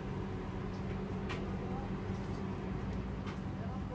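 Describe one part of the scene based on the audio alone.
A fish sizzles as it is laid into hot oil.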